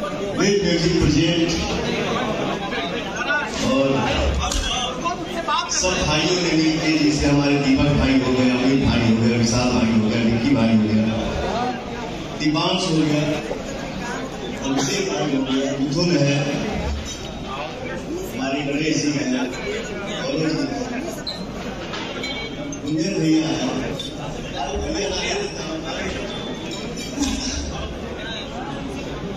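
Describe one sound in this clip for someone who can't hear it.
A man speaks with animation through a loudspeaker in a large echoing hall.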